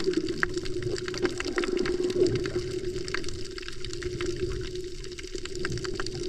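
Underwater, a coral reef crackles with many faint, quick clicks.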